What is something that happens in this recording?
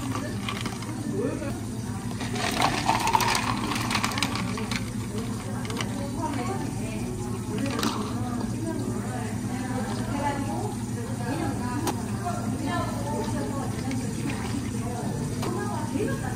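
A coffee machine hums steadily.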